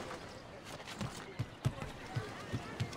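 Footsteps thud quickly across roof tiles.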